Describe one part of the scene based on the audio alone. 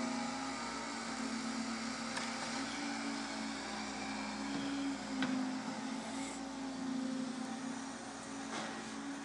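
A diesel hydraulic excavator engine drones.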